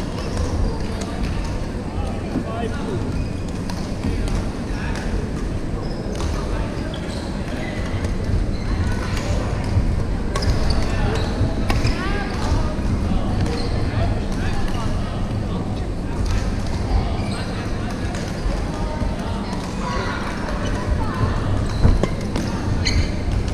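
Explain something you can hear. Many young people chatter and call out across a large echoing hall.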